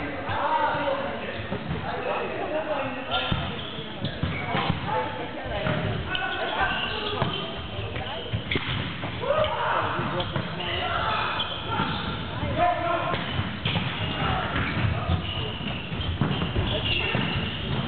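A volleyball is struck sharply by hands.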